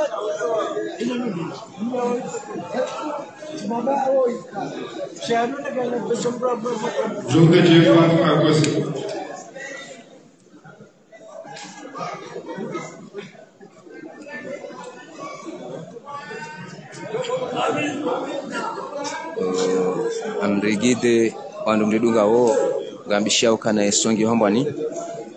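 A crowd of men chatter around at a gathering.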